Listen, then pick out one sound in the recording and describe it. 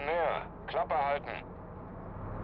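A man speaks sharply, nearby.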